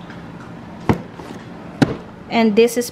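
A cardboard box knocks and rustles as it is handled.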